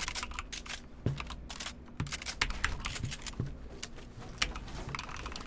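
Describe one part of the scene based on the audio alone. Sharp clicks and thuds from a video game come in quick bursts.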